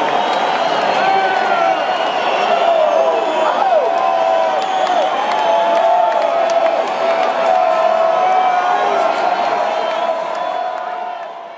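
People in a crowd whistle shrilly.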